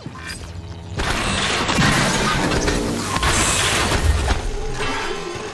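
A laser turret fires with a loud, crackling blast.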